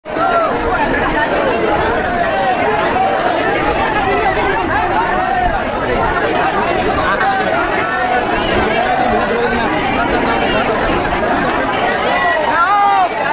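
A large crowd of men and women chants and shouts loudly in an echoing hall.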